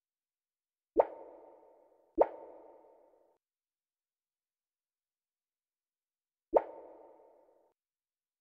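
Soft interface clicks sound as choices change.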